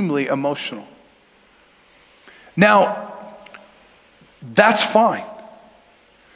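A middle-aged man speaks with animation through a microphone in an echoing hall.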